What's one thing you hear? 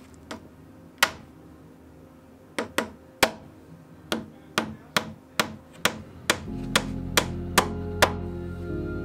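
A hammer taps a small nail into wood.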